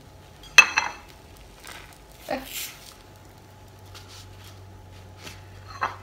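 A silicone spatula scrapes softly against a pan.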